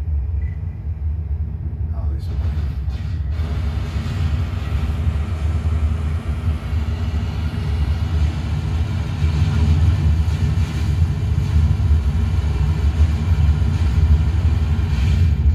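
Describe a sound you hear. A deep spaceship engine rumble plays steadily through loudspeakers and grows louder.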